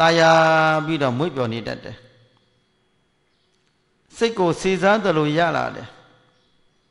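An elderly man chants and speaks slowly into a microphone, with pauses.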